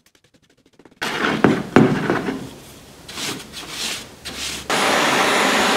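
A brush scrubs against a metal grille.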